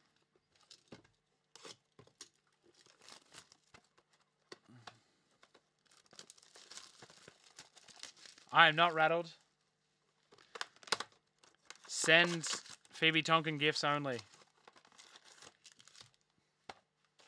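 Card packs rustle and slap as they are handled.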